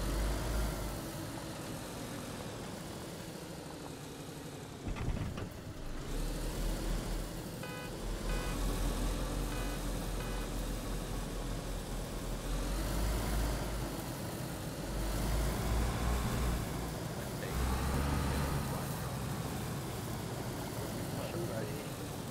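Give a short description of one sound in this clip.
A car engine hums and revs as the car drives over grass.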